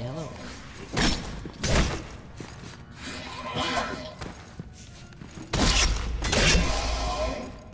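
Heavy blade strikes land with sharp thuds.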